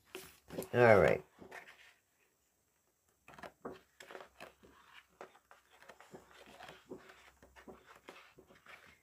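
Sheets of paper rustle and flap as they are flipped through.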